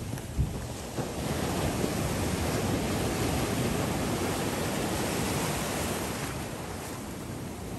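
Ocean waves break and wash onto the shore.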